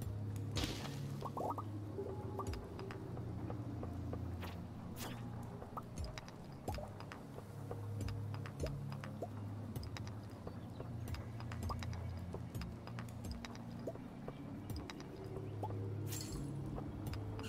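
A pickaxe clinks sharply against rocks again and again in a video game.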